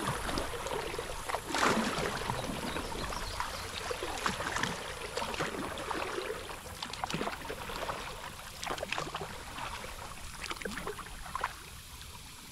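A kayak paddle splashes and dips in the water.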